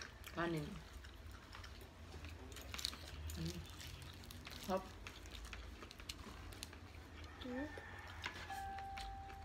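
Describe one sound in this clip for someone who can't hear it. A young boy chews and smacks his lips while eating.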